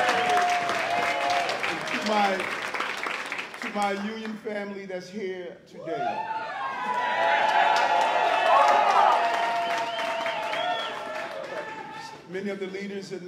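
A crowd cheers and applauds loudly.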